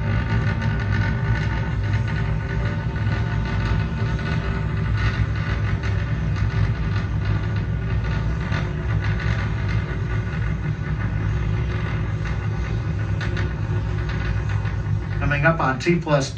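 A rocket engine roars with a deep, steady rumble through a loudspeaker.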